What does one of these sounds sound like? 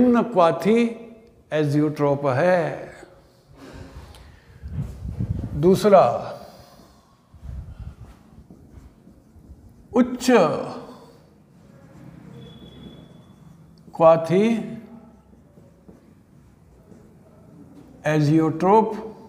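An elderly man speaks calmly close by, explaining in bursts with pauses.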